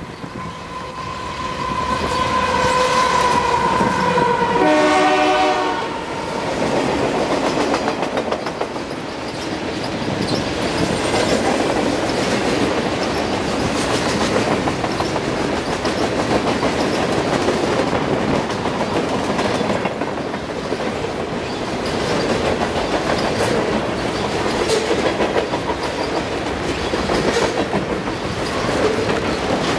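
A model train's wheels clatter and rumble steadily along the track.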